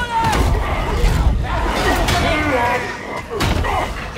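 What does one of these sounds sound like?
Heavy blows strike and crunch.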